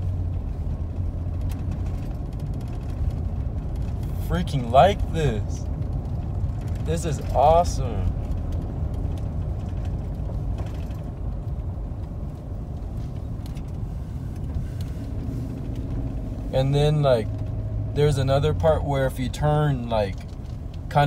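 A car engine hums low and steadily.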